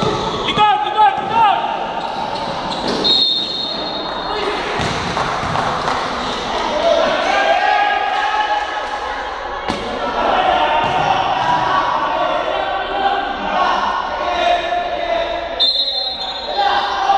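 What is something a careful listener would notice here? A crowd of young men shout and chatter in a large echoing hall.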